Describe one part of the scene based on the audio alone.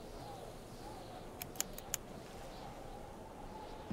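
A metal carabiner clicks shut on a cable.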